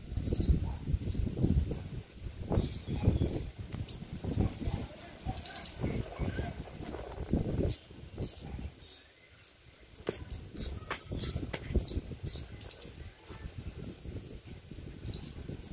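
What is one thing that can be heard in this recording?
A pigeon coos softly close by.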